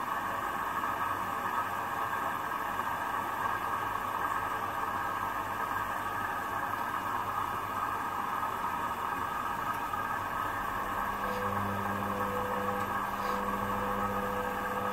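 Water and suds slosh inside a washing machine drum.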